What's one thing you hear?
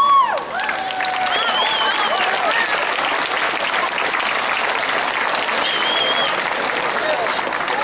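A crowd claps and cheers.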